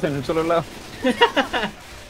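A rifle fires a short burst.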